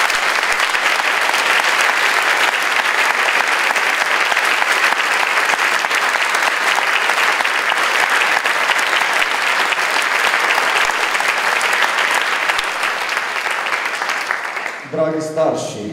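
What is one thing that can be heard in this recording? An audience and a choir applaud loudly in a large hall.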